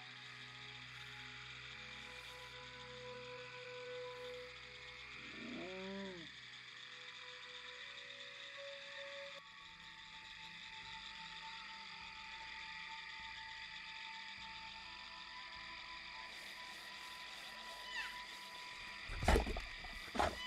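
An animal's paws pad softly through grass.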